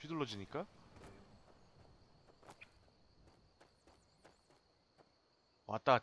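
Footsteps crunch softly on grass and stones.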